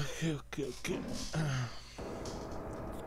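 A man speaks casually into a nearby microphone.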